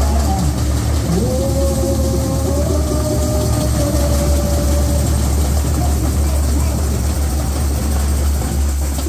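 A samba drum band plays a fast, loud rhythm in the open air.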